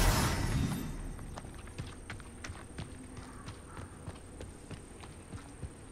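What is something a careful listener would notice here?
Footsteps tread softly on a path.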